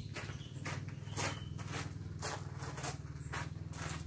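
Footsteps crunch on gravel nearby.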